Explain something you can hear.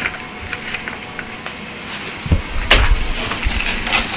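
Fresh noodles rustle and slap as hands toss them.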